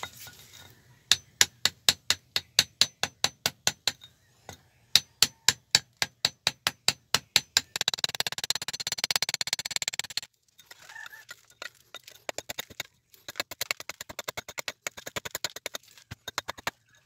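A metal rod taps rapidly against stone.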